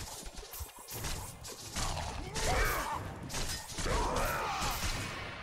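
Chained blades whoosh and slash through the air.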